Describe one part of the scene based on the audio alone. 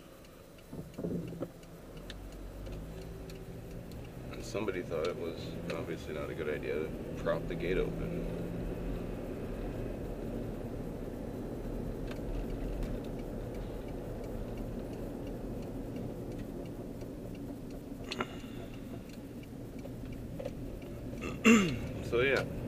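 A car drives along with a steady low rumble of engine and tyres, heard from inside.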